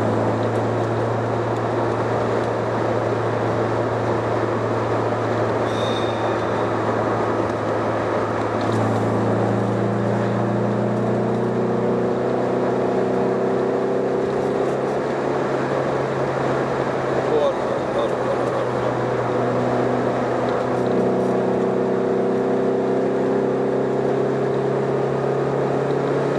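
Tyres roll on the road, with a steady rush of noise.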